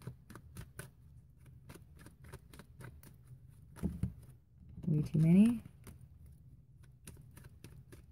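Playing cards riffle and flick as a deck is shuffled by hand.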